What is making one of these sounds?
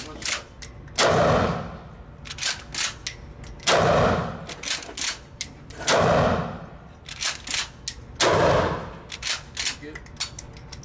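A shotgun fires loud blasts that echo off hard walls.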